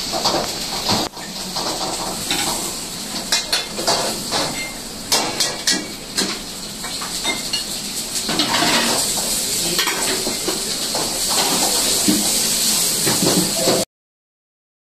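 Metal utensils clatter and clink against pots.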